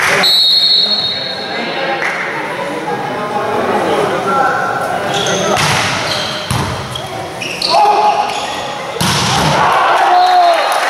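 Shoes squeak on the gym floor.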